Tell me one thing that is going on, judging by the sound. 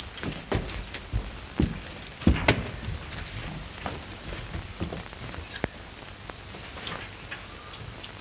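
Bodies thump and scuffle as two men struggle.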